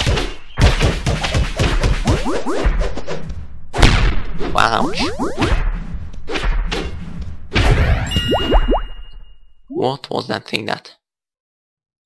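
A sword slashes and strikes in quick bursts of game sound effects.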